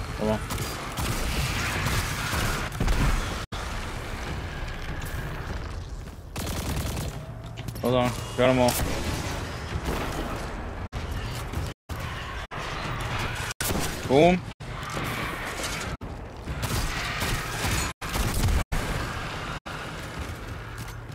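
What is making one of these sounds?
Gunfire and explosions boom and crackle in quick bursts.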